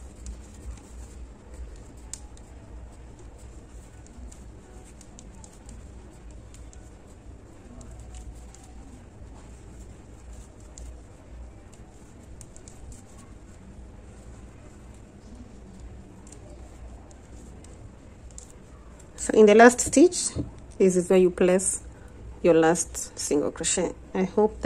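A crochet hook pulls yarn through loops with a soft rustle.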